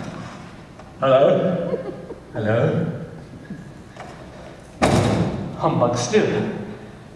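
An elderly man speaks loudly and theatrically in a large echoing hall.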